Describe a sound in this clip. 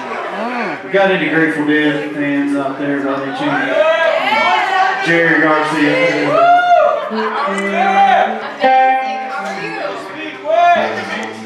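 A man sings into a microphone.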